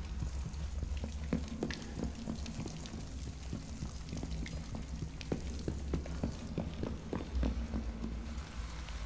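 Footsteps clang on metal stairs and grating.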